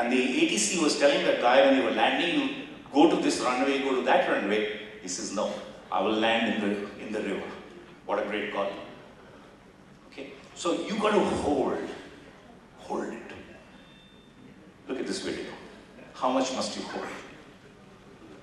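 An elderly man speaks with animation through a microphone in a large echoing hall.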